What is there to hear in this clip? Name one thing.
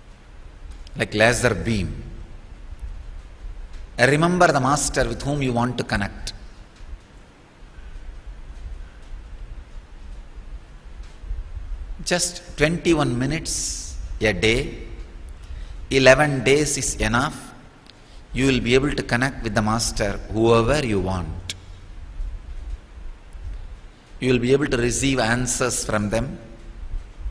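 A man speaks calmly into a microphone, in phrases with pauses.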